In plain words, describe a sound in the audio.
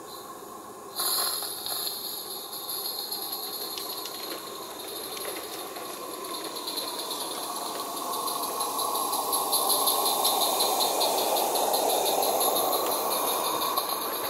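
A model train rumbles along its track, growing louder as it approaches.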